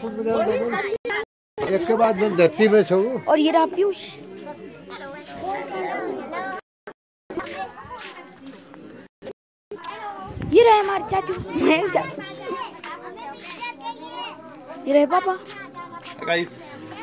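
A boy talks close to a phone's microphone with animation.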